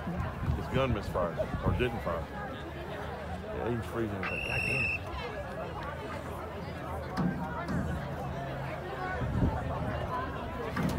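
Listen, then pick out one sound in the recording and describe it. A crowd of young people chatter and call out outdoors nearby.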